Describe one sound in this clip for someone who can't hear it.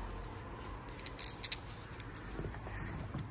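Small metal parts click as a hand fits them onto a wheel.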